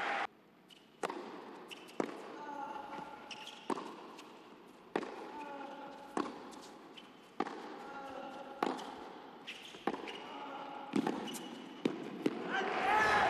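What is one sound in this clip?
Tennis rackets strike a ball back and forth in a steady rally.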